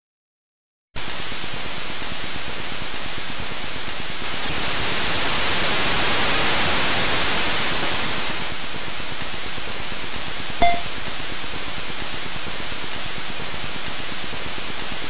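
A harsh noisy engine roar from a racing game drones and swells.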